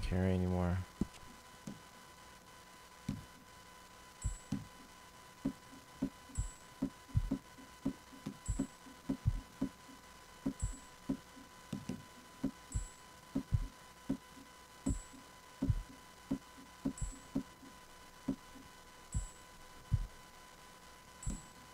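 Soft clicks tick again and again as menu items are scrolled through.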